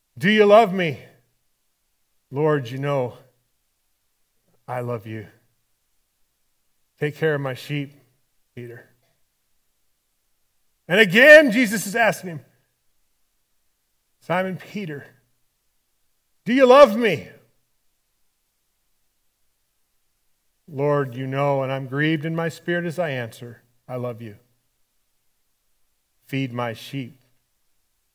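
A man speaks with animation through a microphone, in short phrases with pauses.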